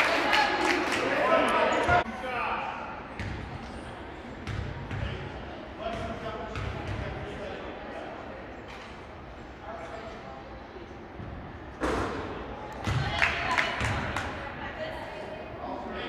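Young players and adults call out and talk in a large echoing gym.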